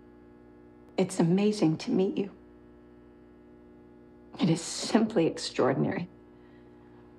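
A young woman speaks quietly and emotionally, close by.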